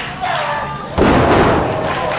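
A wrestler is slammed down onto a ring mat with a heavy thud.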